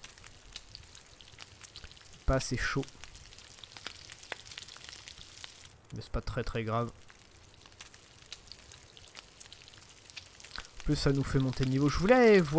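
A campfire crackles and pops softly.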